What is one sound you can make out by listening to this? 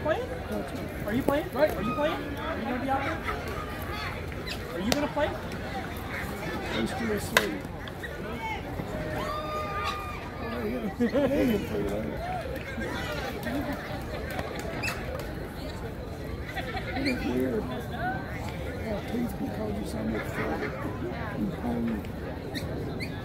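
Players and spectators chatter and call out across an open field outdoors.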